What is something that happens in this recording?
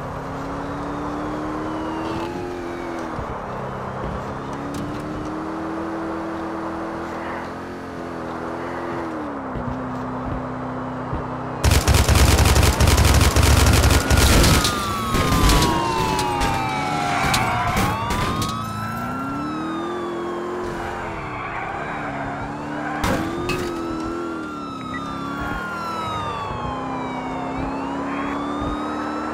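A car engine roars steadily, rising and falling in pitch as it speeds up and shifts.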